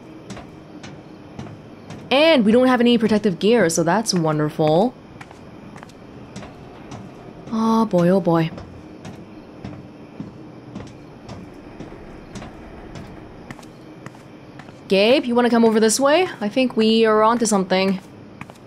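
Footsteps tread softly on a metal walkway.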